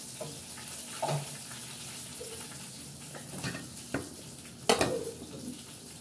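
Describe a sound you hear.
Objects clatter and knock on a hard surface close by.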